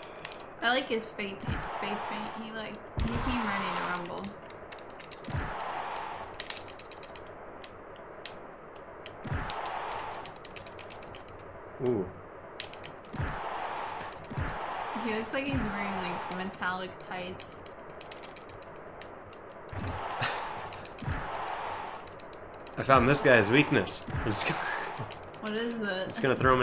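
A young woman talks, close to a microphone.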